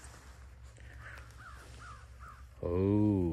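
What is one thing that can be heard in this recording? A small bird chirps close by.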